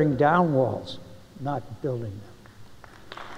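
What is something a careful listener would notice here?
An elderly man speaks calmly into a microphone in a large hall.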